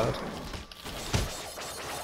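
A magical energy blast bursts with a bright whoosh.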